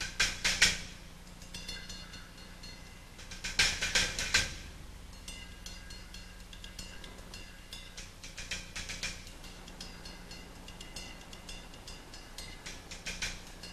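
A drummer plays a fast pattern on drums and cymbals.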